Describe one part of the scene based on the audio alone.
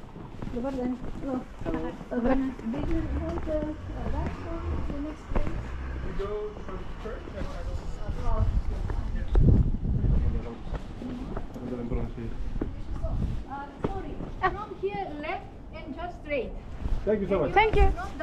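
Footsteps scuff on cobblestones.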